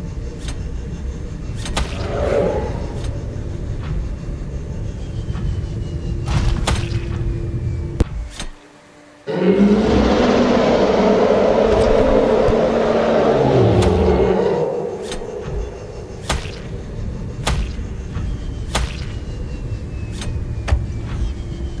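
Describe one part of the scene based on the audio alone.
Water rumbles and bubbles in a low, steady drone.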